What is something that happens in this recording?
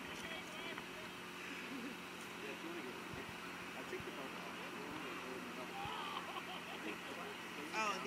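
A young man laughs nearby.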